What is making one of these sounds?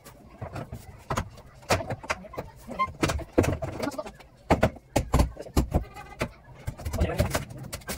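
Wooden boards knock and clatter close by.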